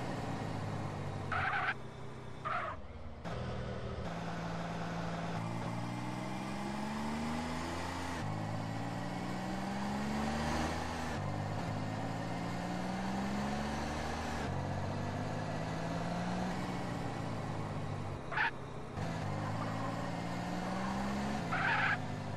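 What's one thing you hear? A car engine revs up and shifts gears repeatedly as the car speeds along.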